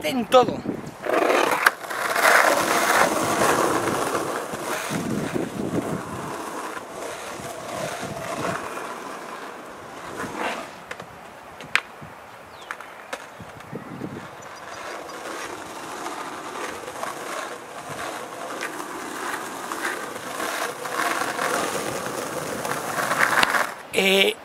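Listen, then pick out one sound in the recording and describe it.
Skateboard wheels roll and rumble on asphalt.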